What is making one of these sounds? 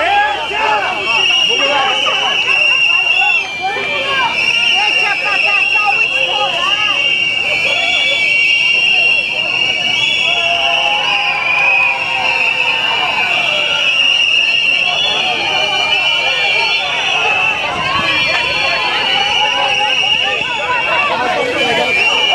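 A crowd of men and women shouts and chants outdoors.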